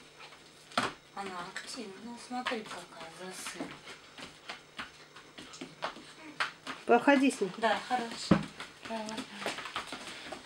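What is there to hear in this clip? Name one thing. A woman talks to a puppy in a high, coaxing voice close by.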